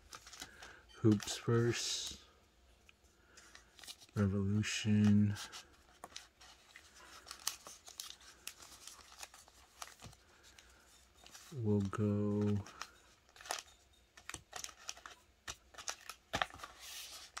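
Foil card packs crinkle and rustle as they are handled.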